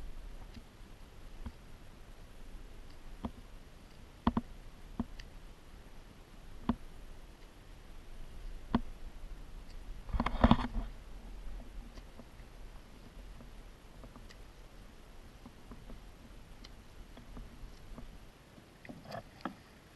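A paddle splashes and drips in calm water.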